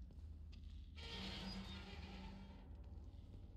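A metal gate rattles as it is pushed.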